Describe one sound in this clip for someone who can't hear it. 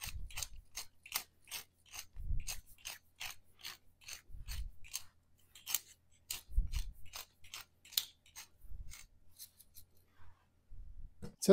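A hand-twisted pepper mill grinds with quick ratcheting clicks.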